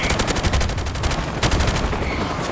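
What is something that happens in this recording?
Suppressed gunshots fire in quick bursts.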